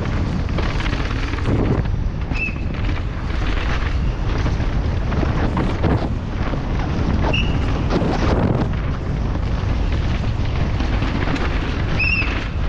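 Bike tyres crunch and skid over a dirt trail.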